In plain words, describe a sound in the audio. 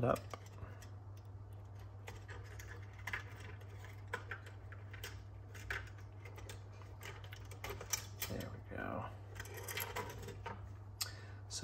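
Small plastic parts click and rattle.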